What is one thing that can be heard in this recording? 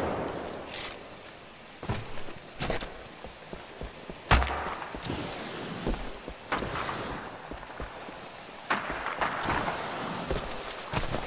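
Footsteps crunch over loose rocks.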